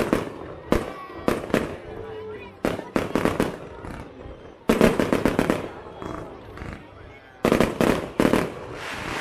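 Fireworks burst with loud booms outdoors, again and again.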